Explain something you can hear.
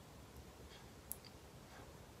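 A piercing gun clicks sharply.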